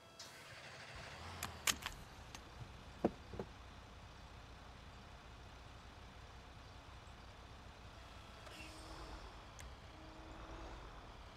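A fire truck engine idles with a low, steady hum.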